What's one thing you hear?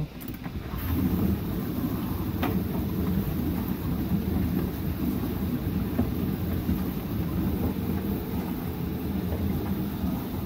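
A dishwasher runs with a steady churning hum.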